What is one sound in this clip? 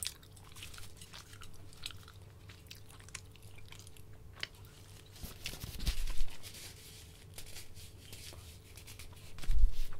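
A young woman chews food with soft, wet mouth sounds close to a microphone.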